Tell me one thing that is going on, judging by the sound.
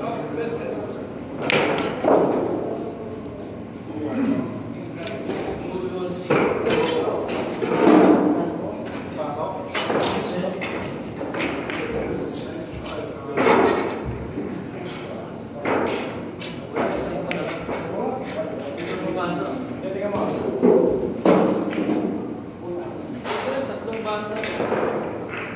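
Billiard balls click together as a cue strikes.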